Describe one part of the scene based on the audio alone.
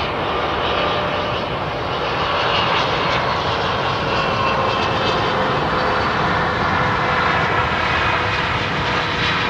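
A jet airliner's engines roar and whine steadily close by.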